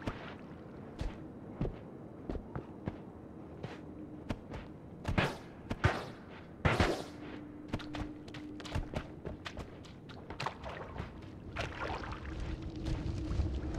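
Spells fire in a video game with sharp bursts and crackles.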